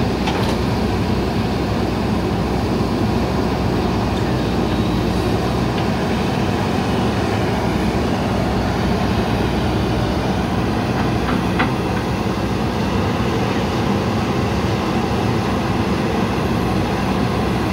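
A digger bucket scrapes and thuds into soil.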